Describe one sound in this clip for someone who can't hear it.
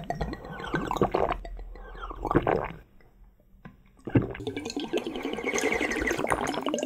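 A man slurps and gulps a drink close to the microphone.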